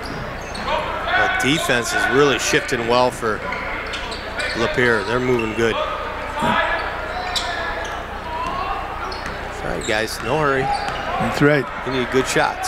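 Young men shout loudly across the court.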